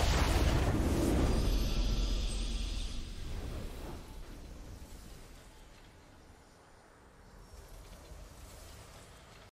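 A triumphant victory fanfare swells and fades.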